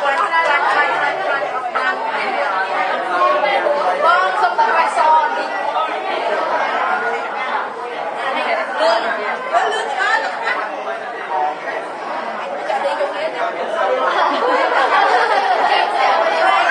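Many children chatter and talk at once close by.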